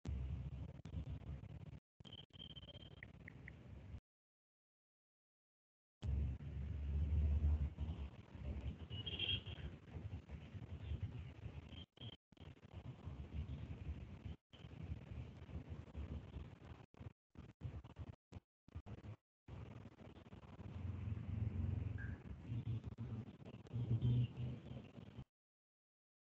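A young man speaks calmly over an online call, with short pauses.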